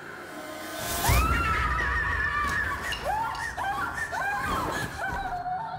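A young woman cries out in panic.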